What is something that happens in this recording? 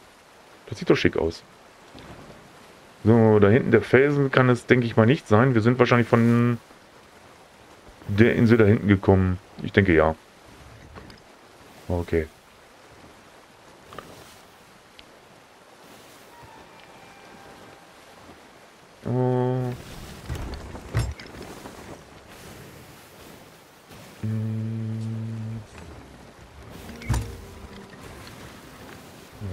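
Waves wash against a wooden ship's hull.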